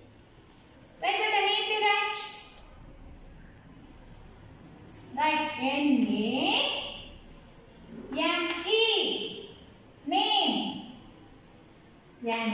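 A woman speaks clearly and calmly close by.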